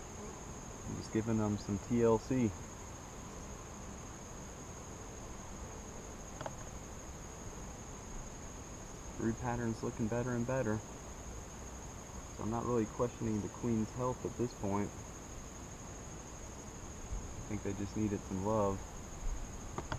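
A man speaks calmly close by.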